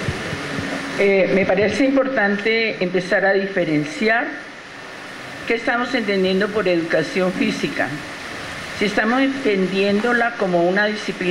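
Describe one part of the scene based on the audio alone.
A woman speaks calmly through a microphone and loudspeakers in a large echoing hall.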